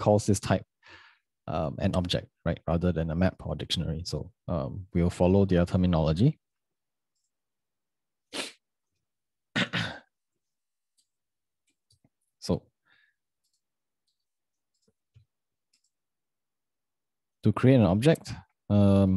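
A young man talks calmly into a close microphone, with pauses.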